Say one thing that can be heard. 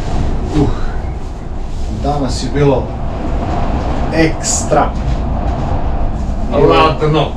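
A low steady rumble fills an enclosed cabin.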